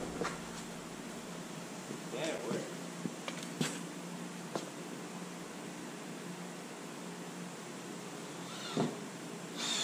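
Wooden boards knock and clatter as men shift them.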